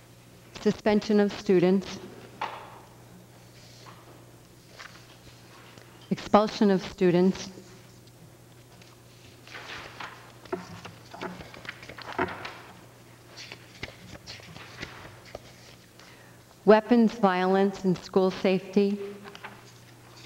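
A middle-aged woman speaks calmly into a microphone in bursts.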